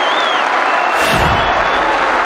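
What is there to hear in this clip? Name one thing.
A football thuds nearby.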